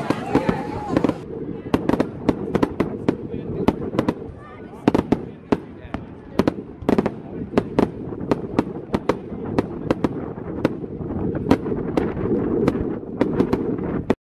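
Fireworks burst with loud, sharp bangs, one after another.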